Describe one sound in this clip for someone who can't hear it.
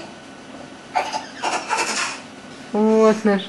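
A baby babbles and squeals.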